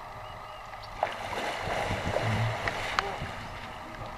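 Water splashes violently as a crocodile thrashes.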